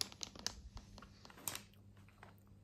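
A foil snack wrapper crinkles as it is handled.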